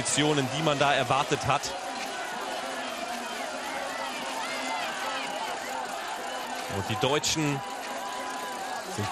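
A crowd cheers in the distance.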